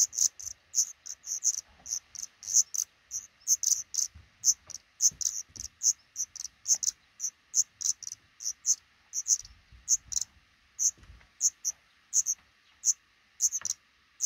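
Nestling birds cheep in quick, high-pitched peeps close by.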